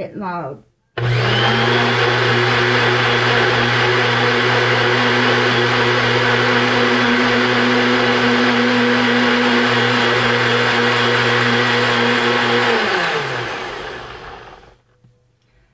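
A blender whirs loudly and steadily, then winds down.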